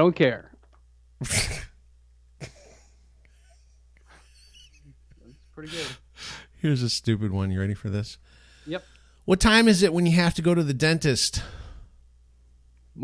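A middle-aged man talks into a microphone, heard through an online call.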